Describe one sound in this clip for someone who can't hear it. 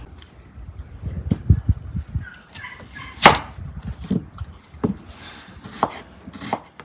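A knife cuts through an onion and taps on a wooden board.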